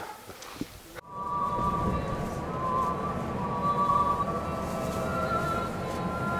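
A bus engine hums steadily from inside the bus.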